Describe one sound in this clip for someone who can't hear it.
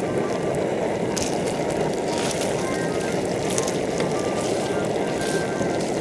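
A metal spatula scrapes and stirs in a frying pan.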